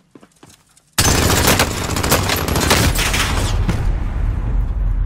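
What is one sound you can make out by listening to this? Gunshots fire loudly in rapid bursts.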